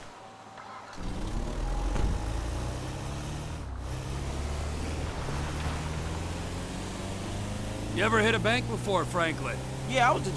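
A van engine hums steadily as the van drives off.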